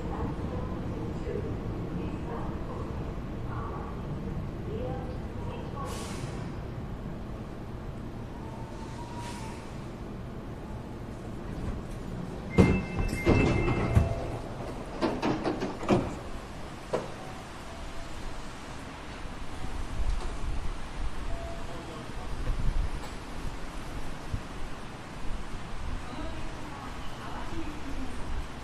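A train hums steadily while standing still.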